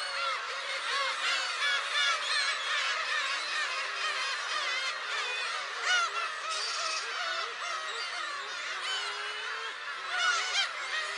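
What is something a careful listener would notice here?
A large colony of gulls calls and cries constantly nearby.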